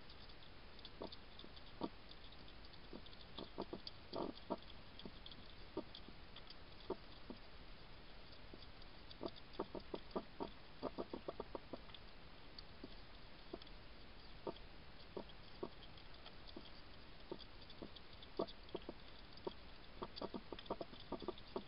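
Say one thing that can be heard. A hedgehog chews and crunches food up close, with quick clicking smacks.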